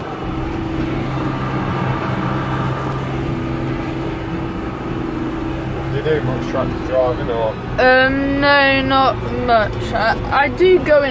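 A tractor engine hums steadily inside the cab.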